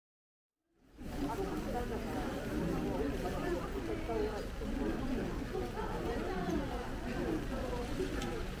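A crowd of men and women chatters nearby while walking.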